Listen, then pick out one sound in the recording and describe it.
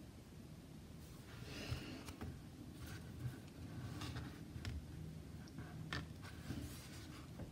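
Cards tap and slide on a table.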